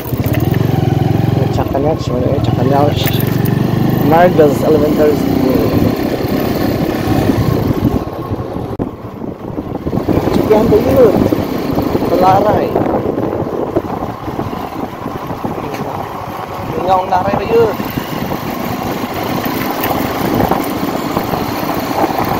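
A motorcycle engine hums steadily while riding along a road.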